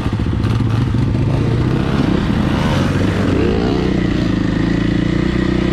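Another dirt bike engine buzzes nearby as it passes.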